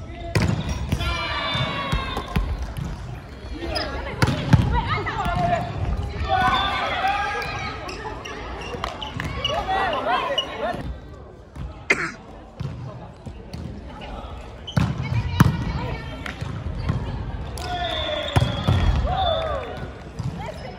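Young men and women shout and call out to each other in a large echoing hall.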